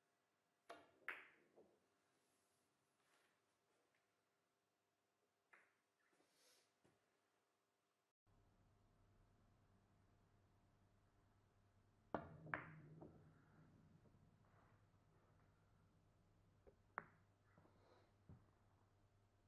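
Billiard balls clack sharply against each other.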